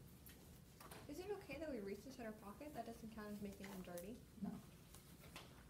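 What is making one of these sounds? An older woman speaks calmly and clearly nearby.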